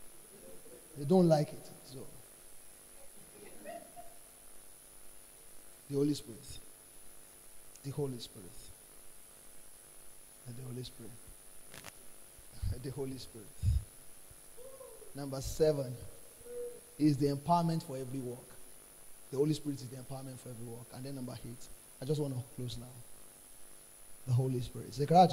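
A young man speaks into a microphone in short bursts with pauses, heard through a loudspeaker.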